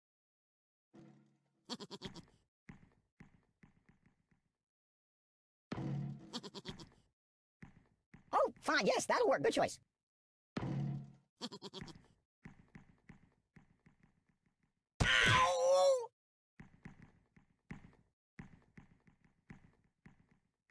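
Small balls bounce and thud off a padded doll in quick, scattered knocks.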